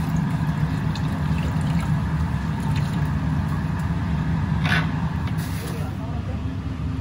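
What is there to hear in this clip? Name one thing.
Water runs from a tap into a basin.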